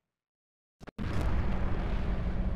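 A large fire roars steadily.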